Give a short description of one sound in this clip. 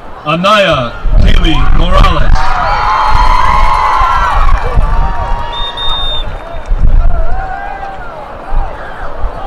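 A crowd cheers and whoops outdoors.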